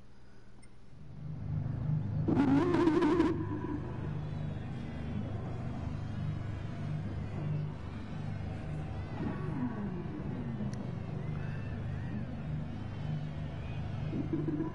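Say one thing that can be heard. Racing car engines roar steadily at high speed.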